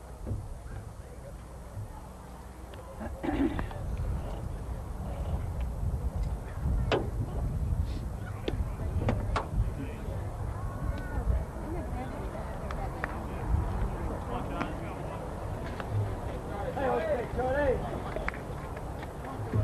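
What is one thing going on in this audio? Crowd voices murmur and call out across an open outdoor ballpark.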